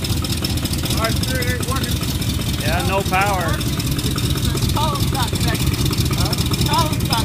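A man speaks briefly over the engine noise.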